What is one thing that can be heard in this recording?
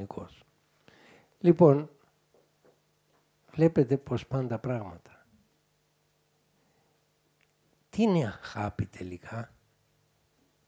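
An elderly man speaks calmly through a microphone, with pauses between phrases.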